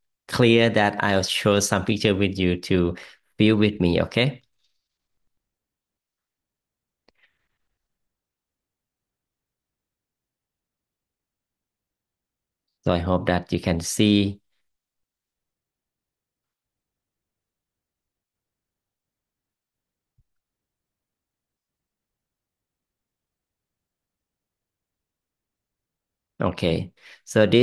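A middle-aged man speaks calmly and warmly over an online call, in short bursts with long pauses.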